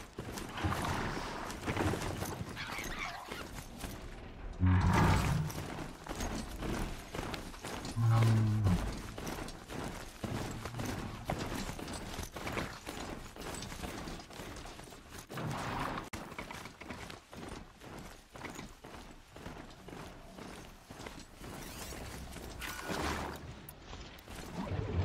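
A mechanical mount's metal feet thud and clank as it gallops over rough ground.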